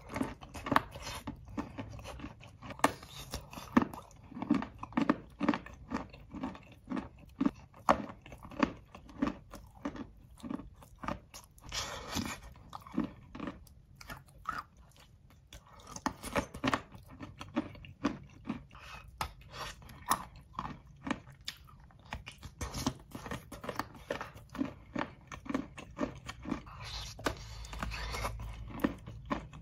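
Wet chewing and lip smacking sound close up.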